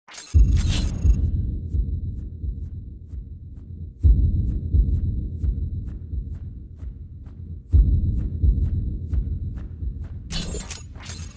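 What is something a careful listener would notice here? Electronic ticks sound rapidly as a score tally counts up.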